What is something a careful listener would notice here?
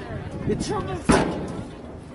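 A football is kicked with a sharp thud.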